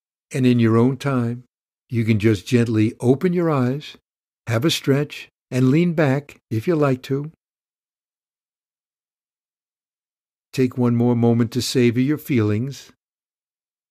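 An older man speaks calmly and warmly, close to a microphone.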